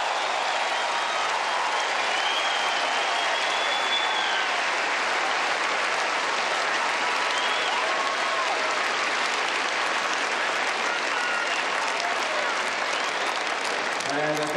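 Fans whistle shrilly among the cheering crowd.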